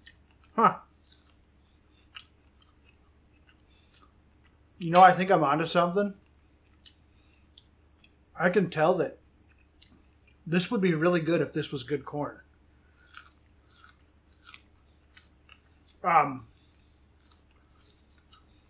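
A man chews and crunches on corn.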